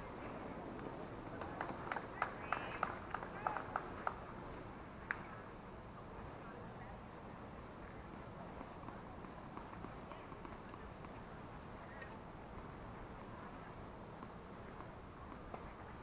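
A small crowd of spectators murmurs faintly in the distance outdoors.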